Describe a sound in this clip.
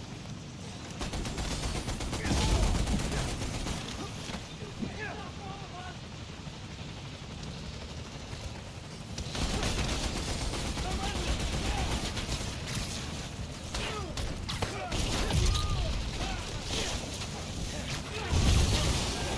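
Explosions and crashes boom loudly amid a fight.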